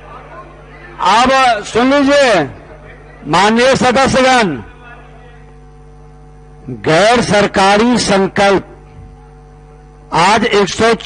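An elderly man speaks forcefully into a microphone, in loud bursts.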